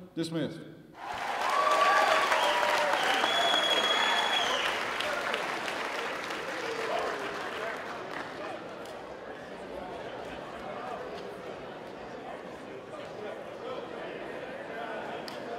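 A crowd of men cheers and shouts loudly.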